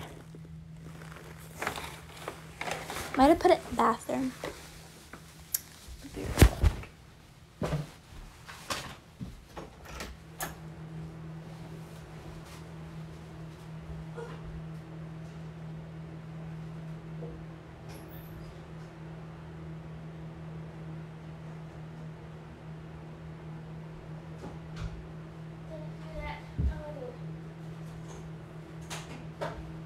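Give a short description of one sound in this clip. A ceiling fan hums and whirs steadily.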